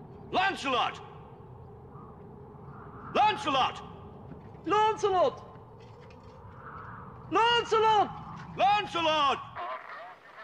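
A man shouts loudly in long drawn-out bursts.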